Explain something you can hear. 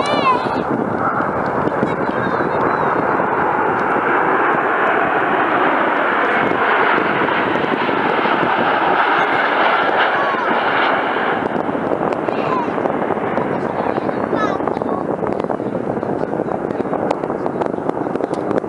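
A formation of jet planes roars loudly overhead, swelling and then slowly fading.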